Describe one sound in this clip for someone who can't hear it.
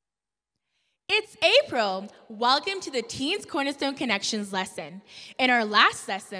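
A young woman speaks with animation into a microphone.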